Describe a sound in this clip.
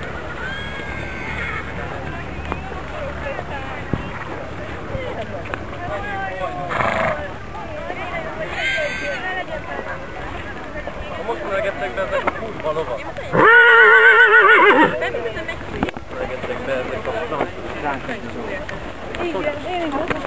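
Horses' hooves thud softly on grass.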